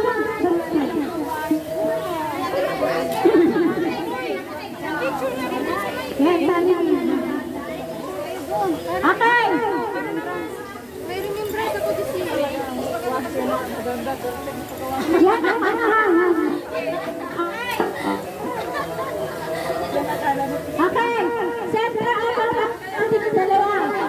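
Several women talk over one another with animation.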